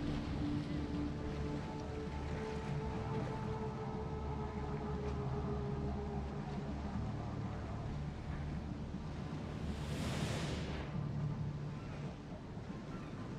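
Waves lap gently against a ship's hull.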